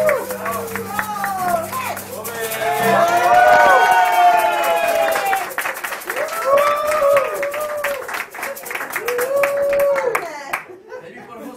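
An accordion plays a lively tune.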